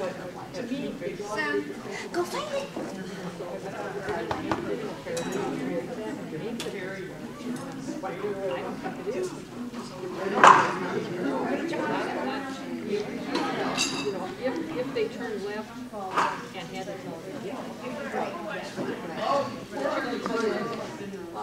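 A woman talks to a dog in a large echoing hall.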